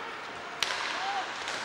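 A hockey stick sharply strikes a puck.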